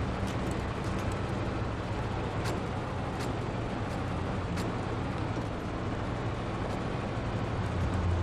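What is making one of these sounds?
A heavy truck engine rumbles steadily as the truck crawls forward.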